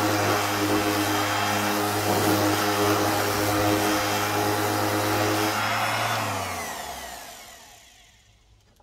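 An electric sander whirs loudly against wood, then winds down.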